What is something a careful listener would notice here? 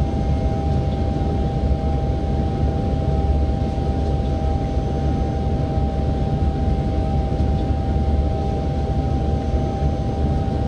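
An electric motor hums with a steady high whine.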